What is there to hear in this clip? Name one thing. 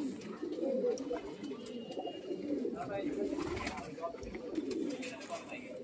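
Pigeons coo softly and steadily nearby.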